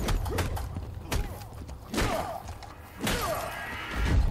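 Heavy blows thud and clang against metal armour.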